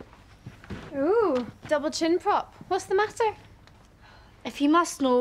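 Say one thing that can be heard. A girl speaks in a sulky voice, close by.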